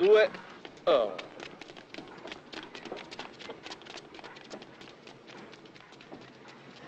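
Several people run with quick footsteps on a hard walkway.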